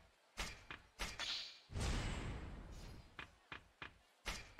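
A whooshing chime sounds as an ability is gained.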